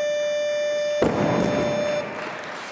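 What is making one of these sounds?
A heavy barbell drops onto the platform with a loud thud.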